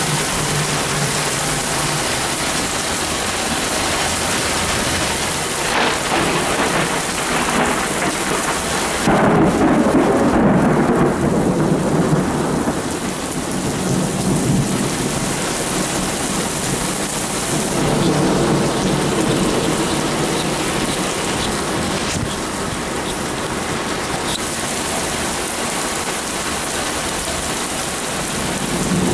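Strong wind roars and gusts outdoors in a storm.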